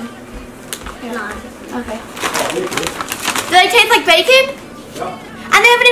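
A crisp packet crinkles and rustles.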